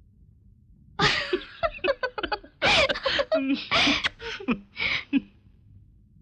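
A man laughs loudly and heartily.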